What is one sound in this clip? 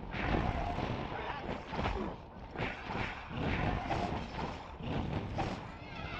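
A fire blast roars and crackles.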